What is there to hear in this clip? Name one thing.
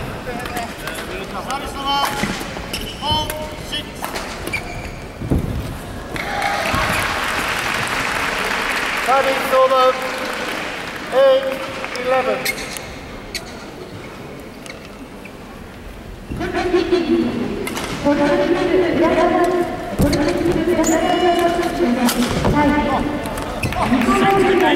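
Sports shoes squeak sharply on a hard court floor in a large echoing hall.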